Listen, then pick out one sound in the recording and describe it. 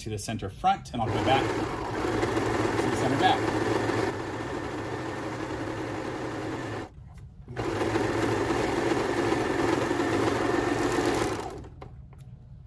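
A serger sewing machine whirs steadily as it stitches fabric.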